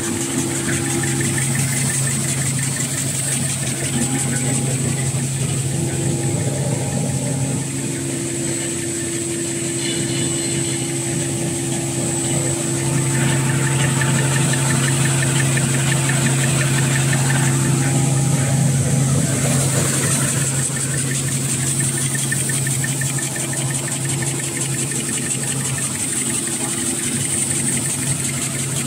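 Machine parts clatter rapidly and rhythmically.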